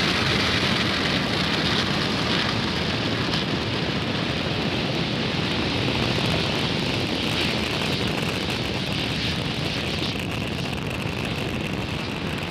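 A rocket engine roars loudly and steadily during liftoff.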